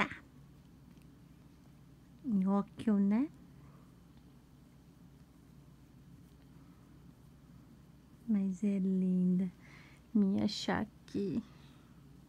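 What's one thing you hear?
A cat licks its fur softly up close.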